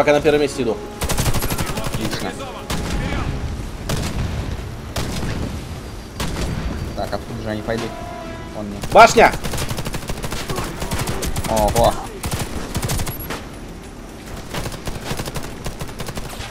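Rapid gunfire cracks in bursts.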